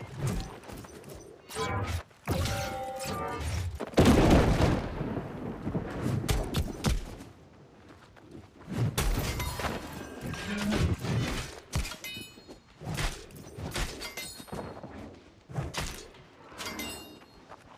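Weapon blows strike and clash in a fight.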